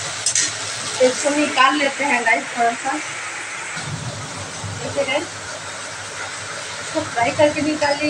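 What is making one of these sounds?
A woman talks casually close by.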